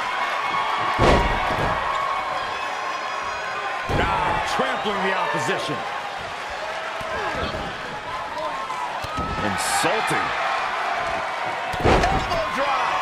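A body slams hard onto a ring mat with a heavy thud.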